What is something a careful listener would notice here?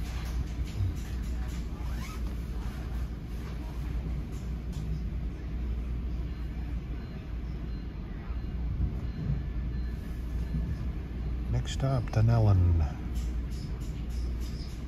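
A train rumbles low and steady, heard from inside a carriage.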